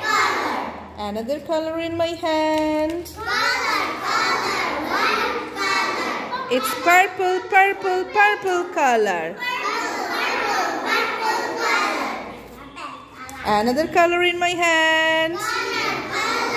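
A group of children chant together loudly in unison.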